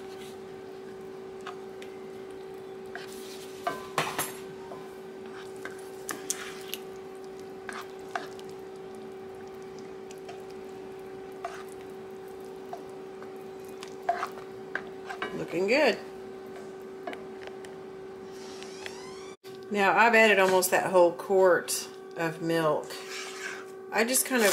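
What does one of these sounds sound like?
A spatula scrapes and stirs a thick, creamy mixture in a pan.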